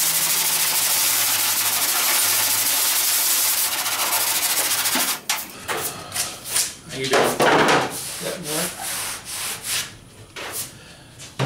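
Stiff brushes scrub a wet surface with a rough swishing.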